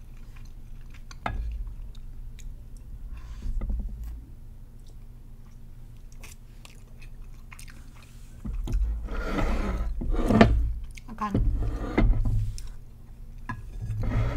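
A spoon scrapes against a plate.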